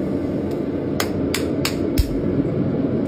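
A young man claps his hands several times.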